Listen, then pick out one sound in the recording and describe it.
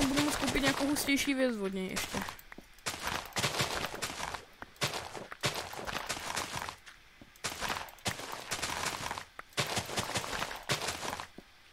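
Plants rustle and crunch in short bursts as they are broken.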